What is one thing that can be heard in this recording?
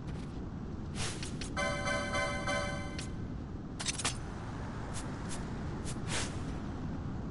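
Short electronic menu beeps chime several times in quick succession.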